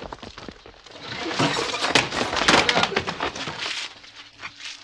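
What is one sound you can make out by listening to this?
A wooden door bursts open with a loud clatter.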